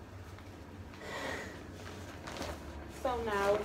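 A large plastic sheet rustles and crinkles.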